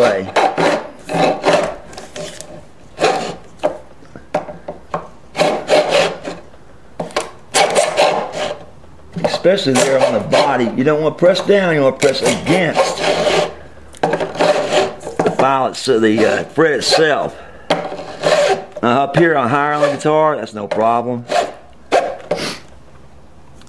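A sanding block rubs back and forth over metal frets.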